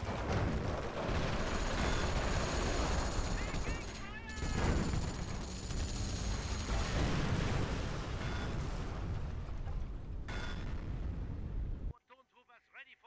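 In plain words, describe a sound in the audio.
Gunfire rattles continuously.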